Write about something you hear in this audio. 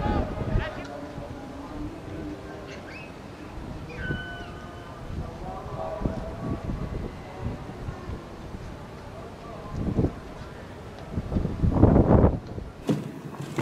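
Men shout in the distance.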